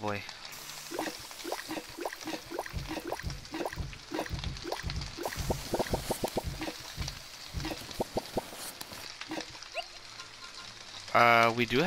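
Pieces of food tap and bounce in a frying pan.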